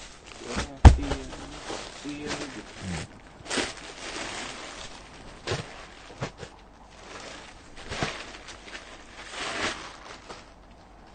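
A plastic wrapper crinkles and rustles.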